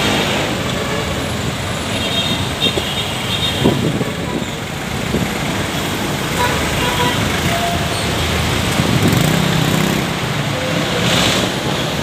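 Motorcycle engines buzz past.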